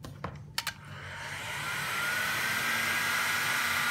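A heat gun starts and blows with a loud, steady rush of air.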